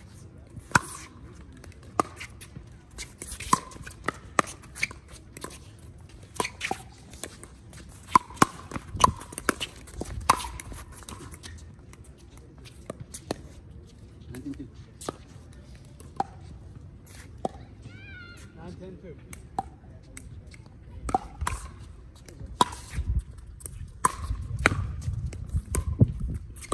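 Paddles strike a plastic ball with sharp hollow pops, back and forth.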